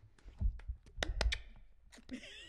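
A man claps his hands a few times.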